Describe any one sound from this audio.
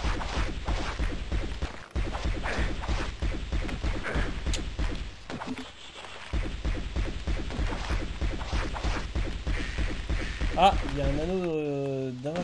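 A rapid string of video game shots fires steadily.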